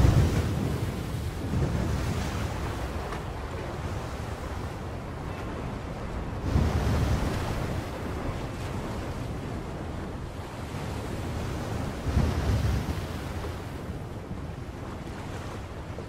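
Strong wind roars outdoors.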